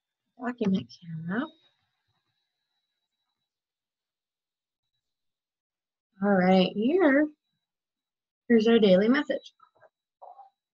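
A young woman speaks calmly and clearly close to a microphone.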